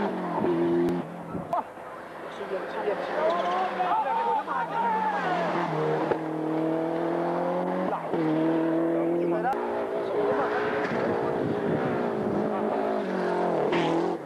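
A car's engine pitch rises and falls as the driver shifts gears.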